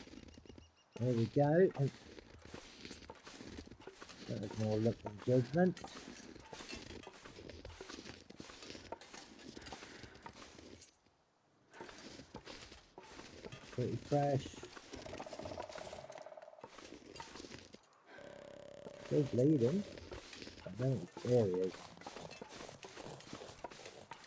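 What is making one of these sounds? Footsteps crunch through deep snow.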